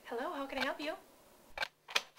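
A young woman talks on a phone.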